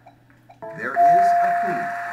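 A bright chime rings out from a puzzle board.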